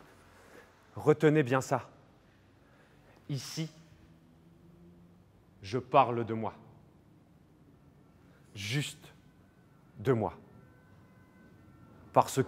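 A young man speaks calmly and close up, with pauses.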